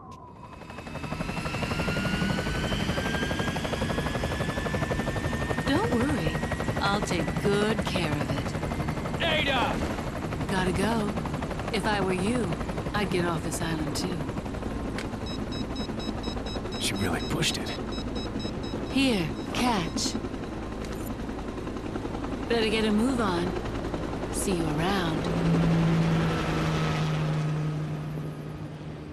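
A helicopter's rotor whirs loudly nearby.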